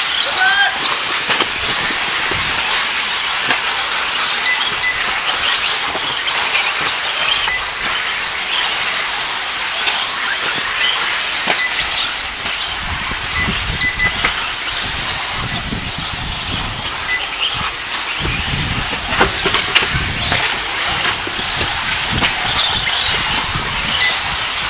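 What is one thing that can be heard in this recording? Model car tyres scrabble and skid on dirt.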